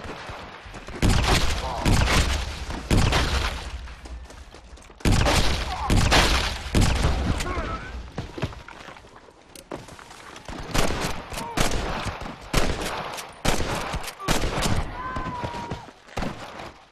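Gunshots crack rapidly and loudly in bursts.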